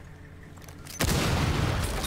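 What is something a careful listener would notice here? A grenade explodes with a loud bang.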